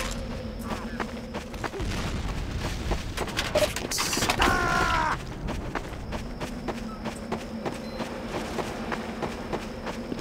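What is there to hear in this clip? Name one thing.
Footsteps thud steadily on wooden and dirt ground.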